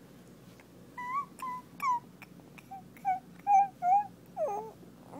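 A baby coos in short, high sounds.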